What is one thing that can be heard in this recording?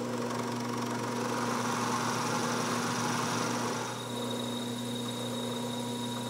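A milling machine hums steadily as its cutter grinds through brass.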